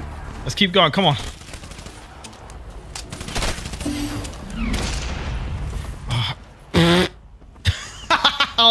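Gunfire bursts in quick shots.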